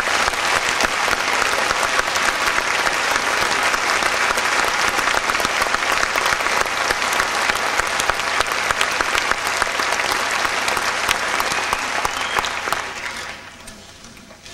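An audience applauds loudly in a large hall, then the clapping dies away.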